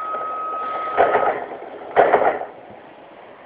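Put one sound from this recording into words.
Bus doors bang shut.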